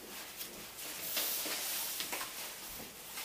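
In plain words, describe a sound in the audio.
Thin fabric scarves rustle as they are lifted and dragged away.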